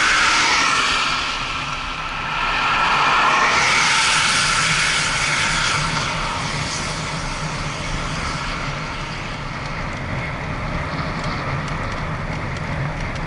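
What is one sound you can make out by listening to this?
Wind rushes loudly past a moving rider.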